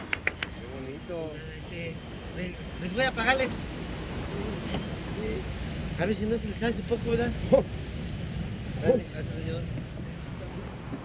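A man talks with animation.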